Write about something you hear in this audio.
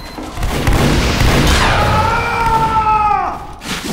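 Gunshots ring out close by.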